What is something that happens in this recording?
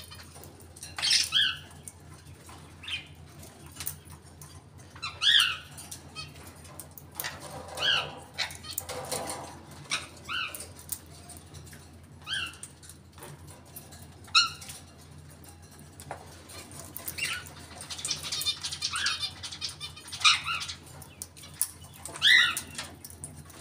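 A small bird chirps in short, repeated calls.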